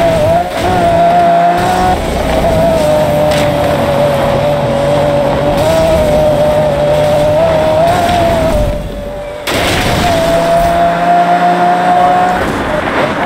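A race car engine roars at a high, steady pitch.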